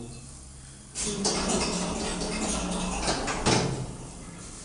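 Elevator doors slide shut with a thud.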